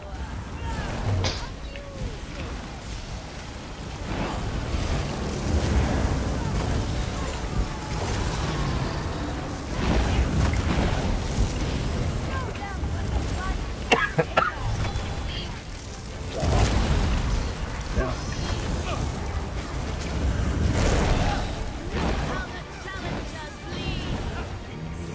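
Lightning spells crackle and zap in rapid bursts.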